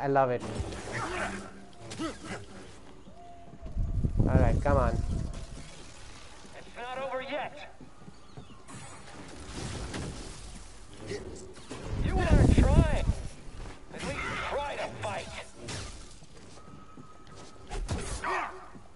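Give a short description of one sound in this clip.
Laser swords clash and crackle in heavy bursts.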